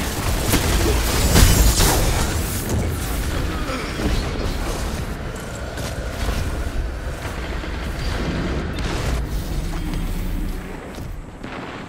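A video game gun fires in rapid bursts.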